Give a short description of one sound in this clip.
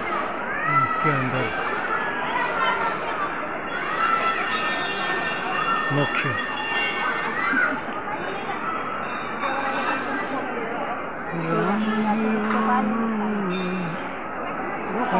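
A crowd of men, women and children chatters nearby outdoors.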